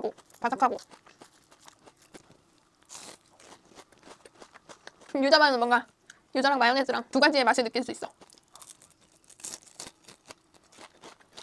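A young woman chews crunchy fried food close to a microphone.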